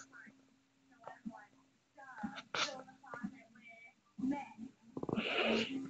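A television plays quietly nearby.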